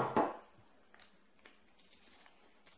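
A spoon scrapes and taps inside a small cup.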